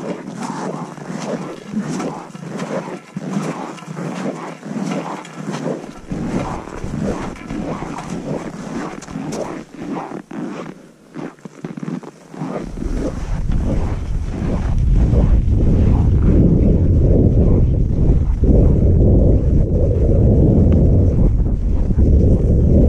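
Skis swish and crunch through deep snow.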